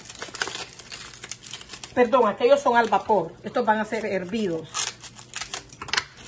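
Dry corn husks rustle and crackle as they are handled.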